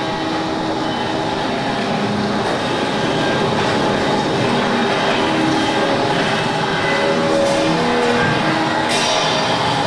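Metal chairs clatter and scrape across a wooden floor.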